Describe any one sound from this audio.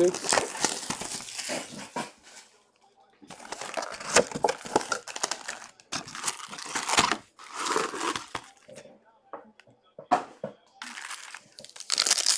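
Cardboard boxes scrape and thump as they are handled.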